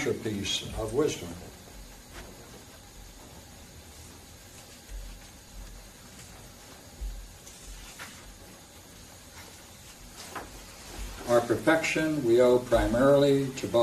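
An elderly man reads aloud calmly from a book.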